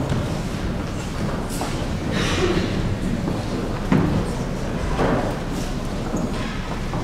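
Children's voices chatter and murmur in a large echoing hall.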